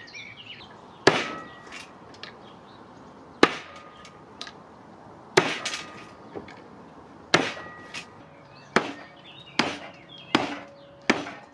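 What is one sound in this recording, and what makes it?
A hammer strikes nuts on a wooden board with sharp knocks.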